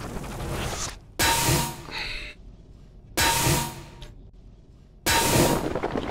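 A sword swooshes through the air.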